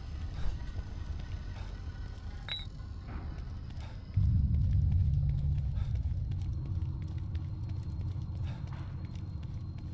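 Footsteps tap slowly on a hard tiled floor.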